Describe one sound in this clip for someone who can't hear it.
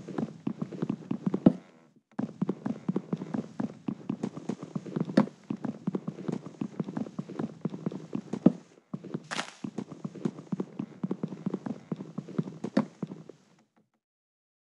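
Wood is chopped with quick, rapid knocks.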